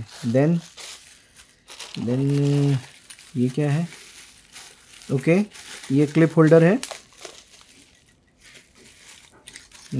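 Plastic bubble wrap crinkles and rustles as hands handle it.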